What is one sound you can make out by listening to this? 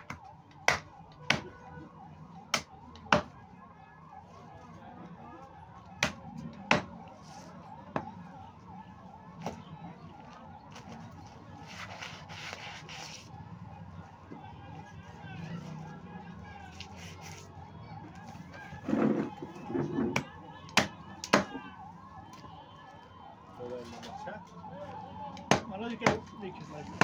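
A cleaver chops through meat and bone on a wooden block with sharp, heavy thuds.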